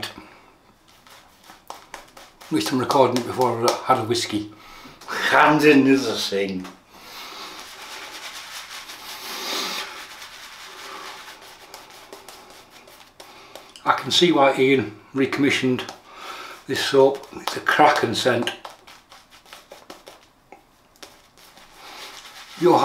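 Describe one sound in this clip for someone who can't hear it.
A shaving brush swishes and scrubs against stubbly skin.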